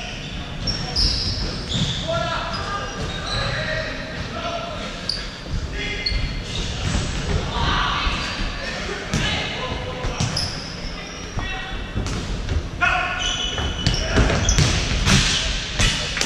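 A ball thuds off a foot and bounces on the floor.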